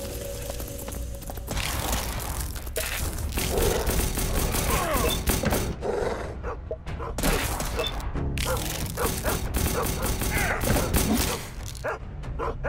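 Gunshots crack in quick bursts during a fight.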